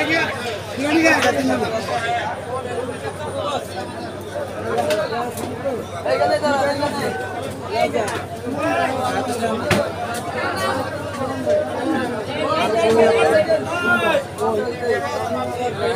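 Many men talk and call out together close by, outdoors.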